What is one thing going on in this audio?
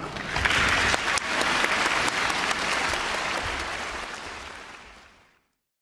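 An audience applauds loudly in a large hall and slowly fades away.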